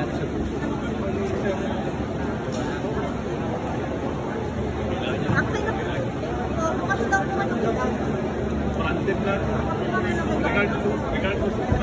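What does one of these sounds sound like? Several people chatter in a low murmur nearby.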